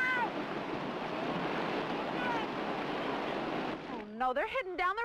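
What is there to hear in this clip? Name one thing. Rushing river water roars over rapids.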